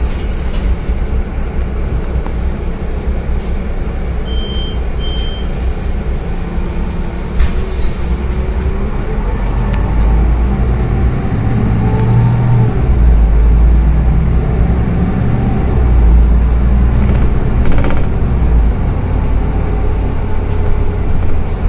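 A bus engine rumbles steadily as the bus drives along, heard from inside.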